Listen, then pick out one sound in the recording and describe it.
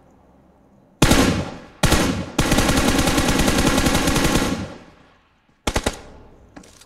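A single loud rifle shot cracks.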